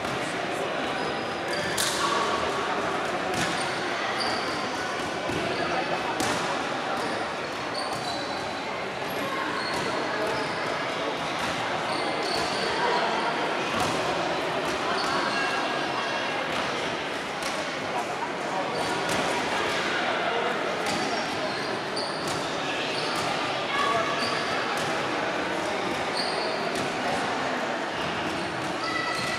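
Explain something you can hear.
A crowd of children and adults chatters throughout a large echoing hall.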